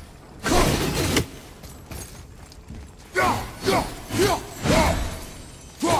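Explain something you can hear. A heavy axe strikes metal with sharp clangs.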